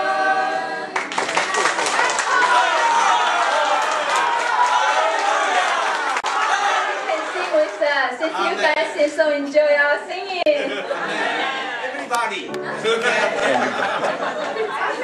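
A group of adults shouts and cheers with animation.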